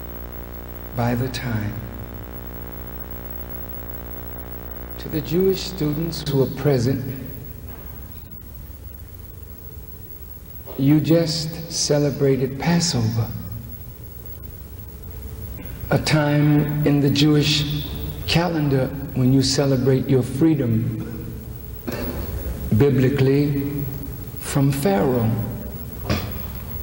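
A middle-aged man speaks slowly and forcefully through a microphone in a large echoing hall, with long pauses.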